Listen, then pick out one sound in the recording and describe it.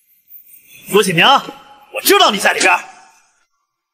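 A man speaks sharply.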